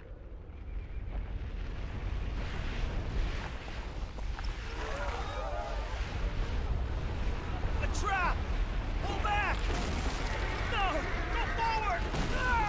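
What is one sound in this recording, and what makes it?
Boulders rumble and crash as they roll down a slope.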